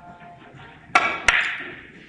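A cue strikes a billiard ball with a sharp tap.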